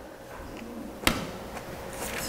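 A cup clinks down onto a table.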